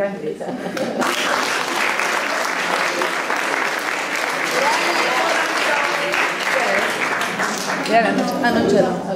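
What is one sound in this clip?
People clap and applaud.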